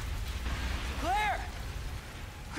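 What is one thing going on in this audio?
A man shouts from a distance.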